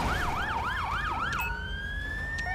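A police siren wails with a fast rising and falling pitch, then stops.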